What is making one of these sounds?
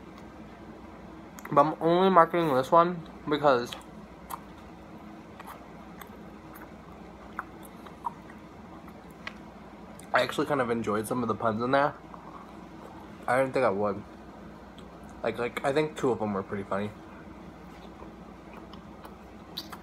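A young man chews food with soft smacking sounds.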